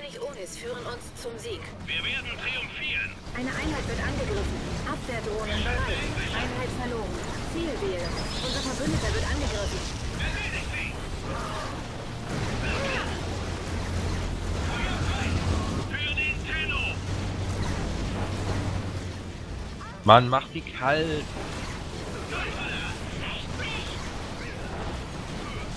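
Laser weapons zap and crackle.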